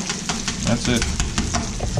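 A metal spatula scrapes and taps against a griddle.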